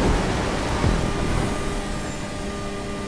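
A motorbike engine drones.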